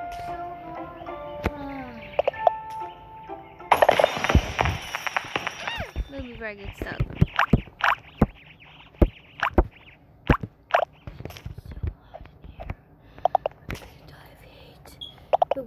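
Coins clink and chime in quick bursts.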